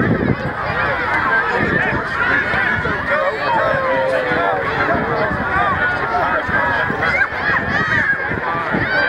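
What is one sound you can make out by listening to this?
A crowd of adults and children chatter and call out outdoors.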